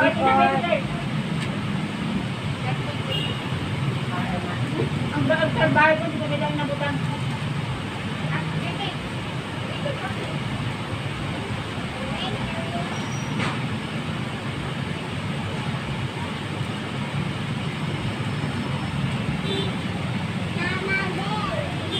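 A steady low murmur of traffic fills the air outdoors.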